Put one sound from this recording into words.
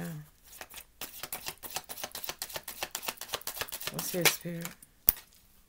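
Playing cards riffle and flick rapidly as they are shuffled.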